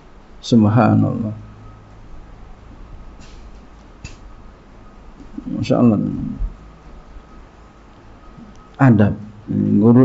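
A man speaks calmly into a microphone in short phrases.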